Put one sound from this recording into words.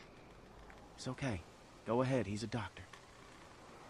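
A young man speaks reassuringly.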